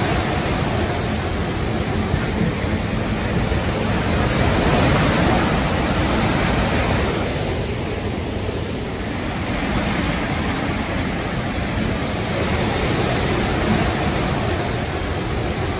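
Heavy rain patters steadily on a window.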